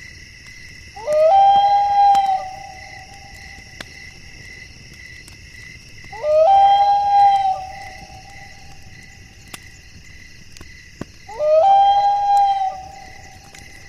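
An owl hoots in long, wavering calls, three times, with pauses between.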